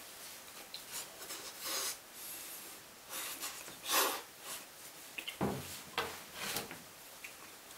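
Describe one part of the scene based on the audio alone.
A man slurps and chews food close by.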